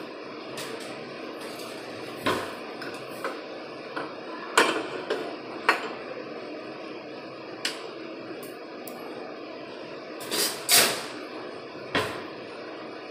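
Utensils clink and knock.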